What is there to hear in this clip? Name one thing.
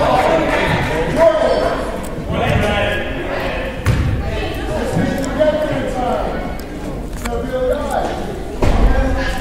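Sneakers squeak on a hard floor in a large echoing hall.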